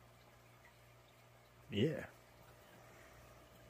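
Air bubbles fizz and gurgle steadily in water.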